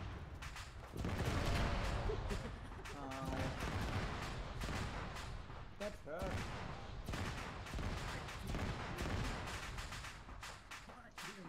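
Heavy explosions boom and rumble nearby.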